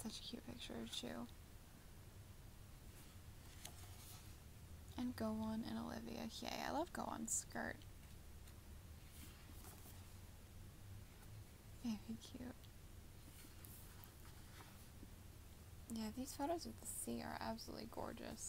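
Stiff book pages rustle and flap as they are turned by hand.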